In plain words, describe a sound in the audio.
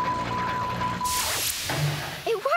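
Metal doors slide open with a hiss.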